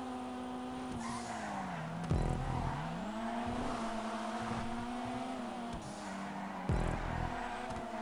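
A car engine drops in pitch and revs back up as gears shift.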